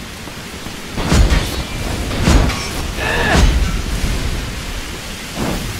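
Magic energy blasts crackle and whoosh in short bursts.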